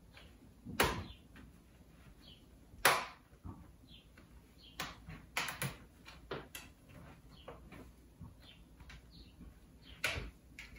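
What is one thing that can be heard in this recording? Plastic clicks and snaps sharply as a laptop case is pried open by hand.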